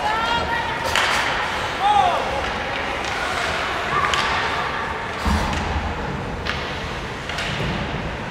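Hockey sticks clack sharply against the puck and boards.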